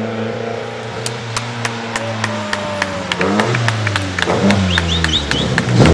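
Exhaust backfires crackle and pop from a rally car.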